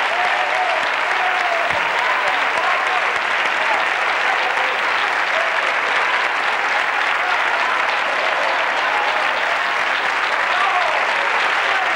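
A large audience claps and applauds loudly in a big hall.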